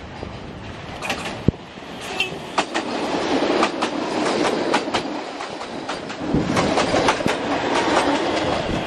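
A train rumbles past close by, with wheels clattering on the rails.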